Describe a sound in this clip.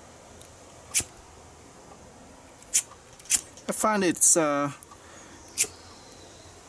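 A lighter clicks sharply as it is struck, several times.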